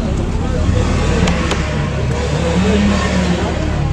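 A car door handle clicks open.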